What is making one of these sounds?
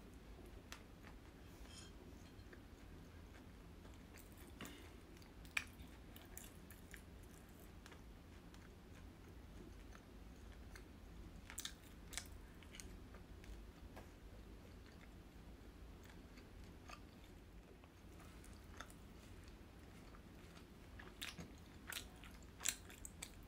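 Chopsticks tap and click against food and a board.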